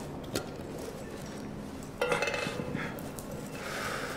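Metal cans scrape and clank together in hands.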